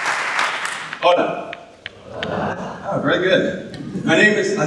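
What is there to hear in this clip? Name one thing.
A man speaks into a microphone to an audience, heard through loudspeakers in a large hall.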